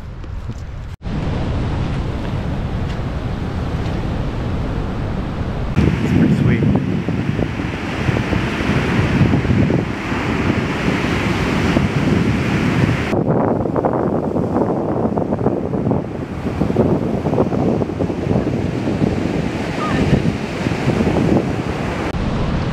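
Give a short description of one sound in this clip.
Surf crashes and rushes steadily onto a pebbly shore.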